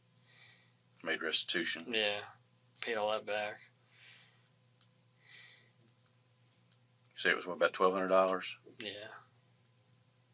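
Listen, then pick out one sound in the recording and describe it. A man speaks in short, quiet bursts.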